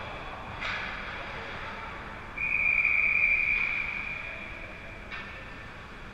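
A hockey stick clacks against the ice.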